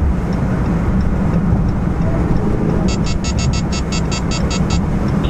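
A car's engine hums and its tyres rumble steadily on the road from inside the car.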